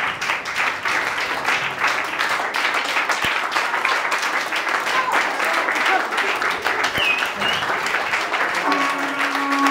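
A crowd claps along rhythmically.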